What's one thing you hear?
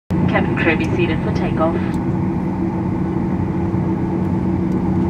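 A jet engine hums and drones steadily, heard from inside an aircraft cabin.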